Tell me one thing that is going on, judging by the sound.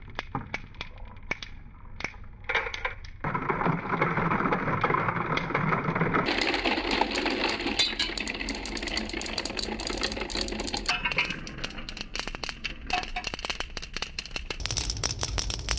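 Small light balls roll and rattle down a cardboard track.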